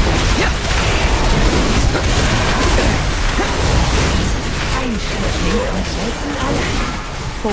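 Magic spells crackle and whoosh in a fast, noisy battle.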